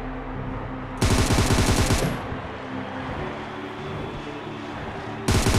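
A rifle fires loudly in rapid bursts.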